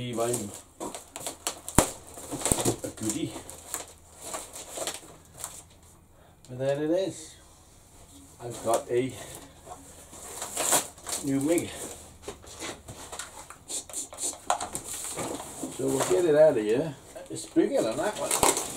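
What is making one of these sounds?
Cardboard rustles and crinkles as it is handled.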